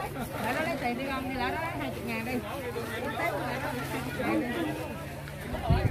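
Several women talk at once, close by.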